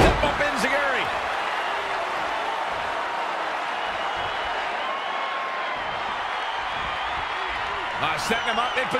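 A large crowd roars and cheers steadily in a big arena.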